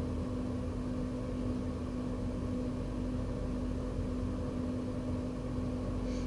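A train's motor hums steadily.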